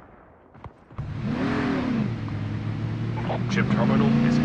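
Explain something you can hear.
A vehicle engine starts and revs up, then runs steadily.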